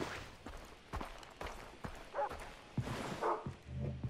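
A body is struck in a short, violent scuffle.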